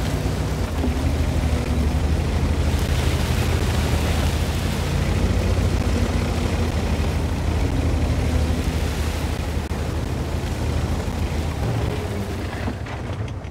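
A tank engine rumbles and roars as the tank drives.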